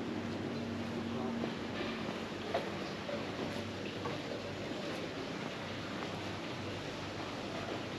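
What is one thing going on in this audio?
A large swing ride whirs with a low mechanical hum.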